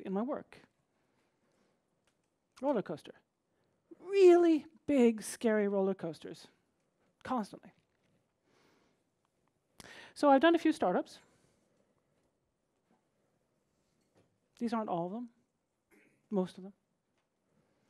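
A woman speaks with animation into a microphone, with pauses.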